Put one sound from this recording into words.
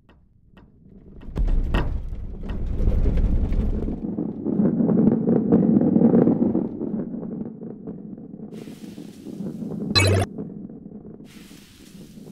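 A ball rolls rumbling along a wooden track.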